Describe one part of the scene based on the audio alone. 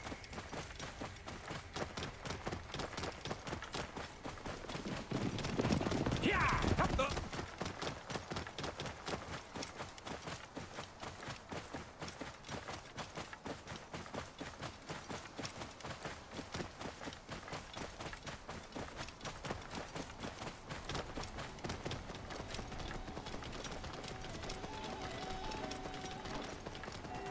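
Horse hooves clop steadily on a stone road.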